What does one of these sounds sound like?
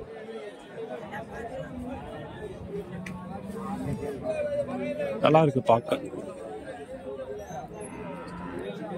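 A large outdoor crowd of men chatters loudly all around.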